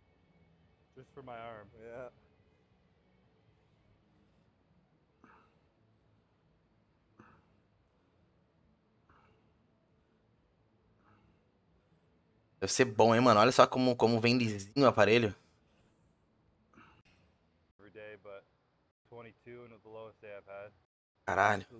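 A man talks calmly, slightly distant.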